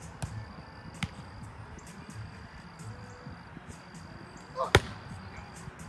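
A volleyball is hit with a sharp slap.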